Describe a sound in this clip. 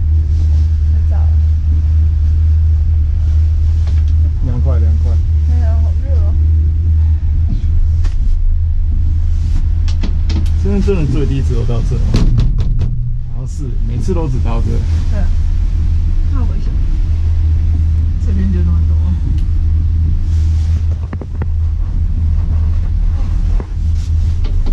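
A gondola hums and rattles steadily as it rides up a cable.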